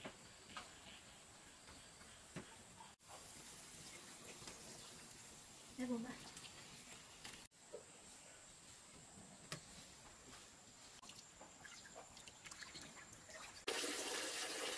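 A wood fire crackles under a pan.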